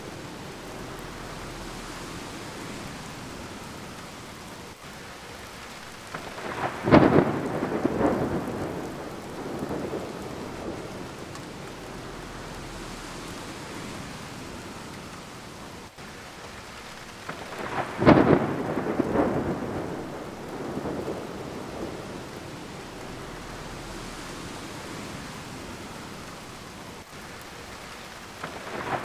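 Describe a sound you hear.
Rain patters steadily against a window pane.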